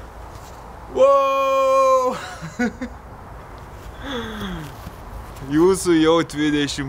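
A young man shouts cheerfully outdoors.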